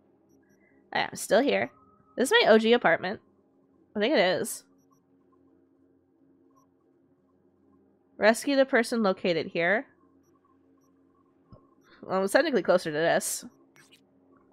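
A young woman speaks with animation into a microphone, in short bursts.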